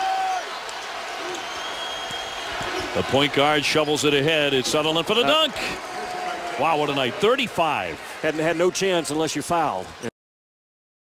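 A large crowd cheers and murmurs in an echoing arena.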